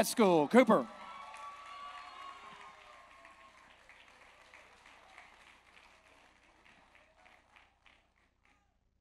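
An audience applauds and the applause slowly fades.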